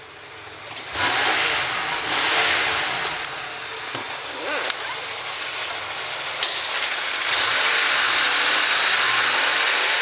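A car engine starts and idles with a steady rumble.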